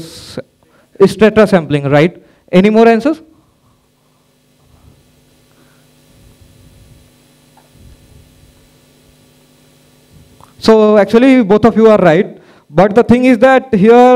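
A man speaks into a microphone through loudspeakers in a large echoing hall, pausing between phrases.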